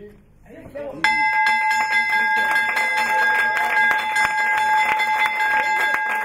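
A large brass bell rings repeatedly with a bright clang.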